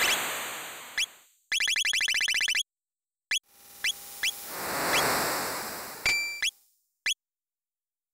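Short electronic menu blips click as a cursor moves.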